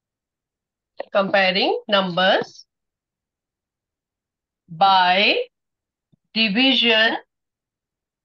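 A woman speaks calmly and clearly into a microphone, in short phrases with pauses.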